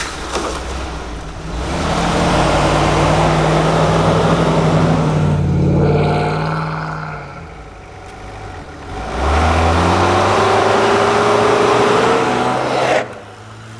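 Tyres crunch and churn through deep snow.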